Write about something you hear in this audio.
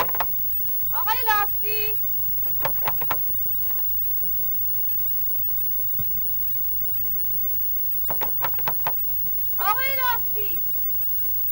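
A woman calls out loudly nearby.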